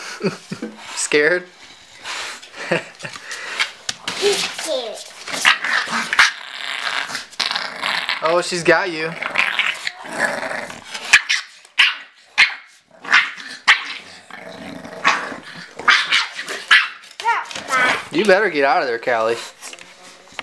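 A puppy yips and whines in short bursts.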